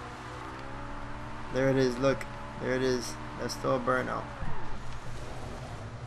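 Car tyres screech while sliding.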